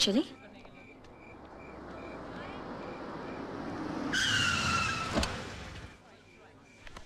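A car engine approaches and passes.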